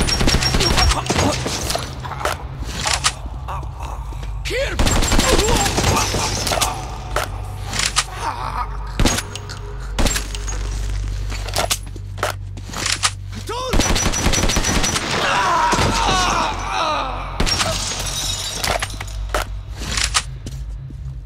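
Rifle shots crack sharply, one after another.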